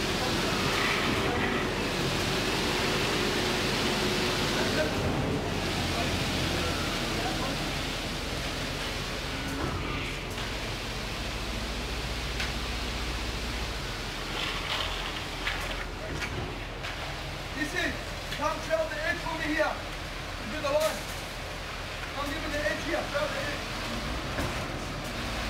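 A concrete pump engine rumbles steadily nearby.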